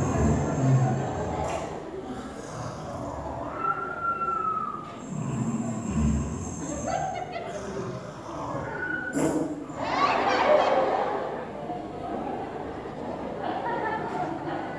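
A crowd of people chatters and calls out in a large, echoing space.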